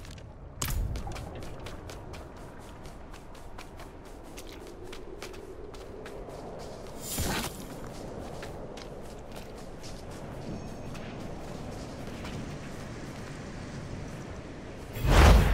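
Footsteps crunch steadily on stone and snow.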